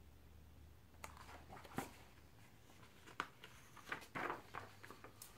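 Book pages rustle and turn.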